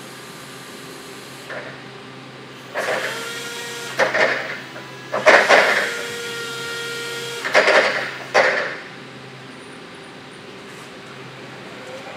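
An electric forklift hums steadily.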